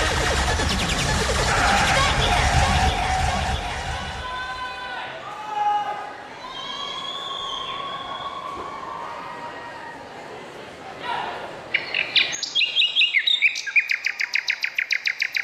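Upbeat music plays loudly over speakers in a large hall.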